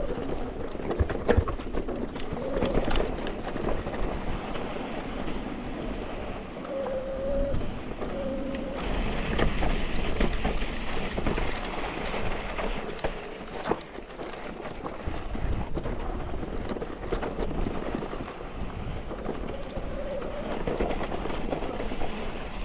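A mountain bike's frame and chain clatter over bumps.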